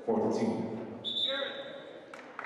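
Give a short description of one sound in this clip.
A referee's whistle blows briefly in a large echoing hall.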